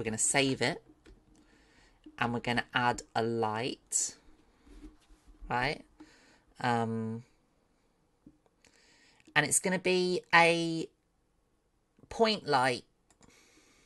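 A woman talks with animation into a close microphone, in short bursts.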